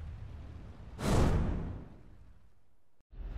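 A sharp whoosh bursts out and dies away.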